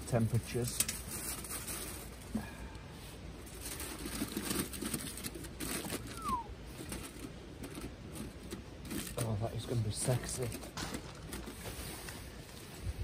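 Aluminium foil crinkles as it is folded by hand.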